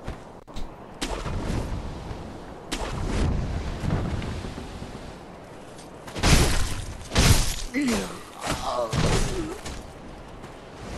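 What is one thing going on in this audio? Blades clash and strike in quick heavy blows.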